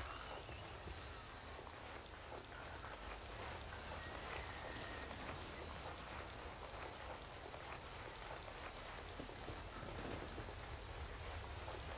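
Footsteps crunch on sand and gravel.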